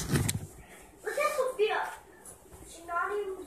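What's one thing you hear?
A young girl speaks close to a microphone.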